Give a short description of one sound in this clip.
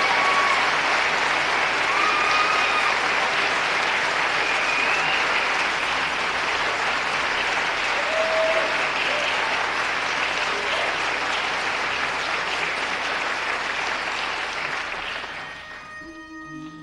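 An audience applauds loudly in a large hall and then dies down.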